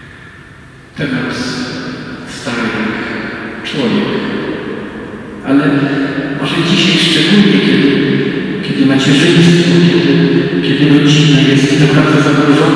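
An elderly man speaks slowly through a microphone in a large echoing hall.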